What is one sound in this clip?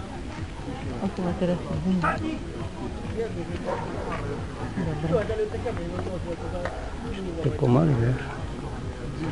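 A man calls out commands to a dog across an open field.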